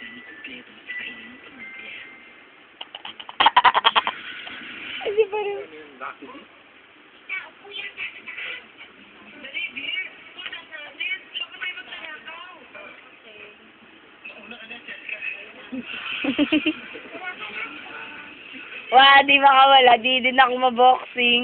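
Music and singing play from a television.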